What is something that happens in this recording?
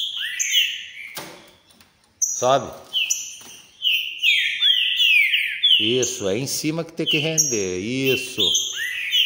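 Small caged birds chirp and sing loudly, close by.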